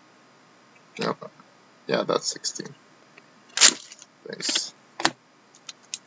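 Cards click and shuffle in hands.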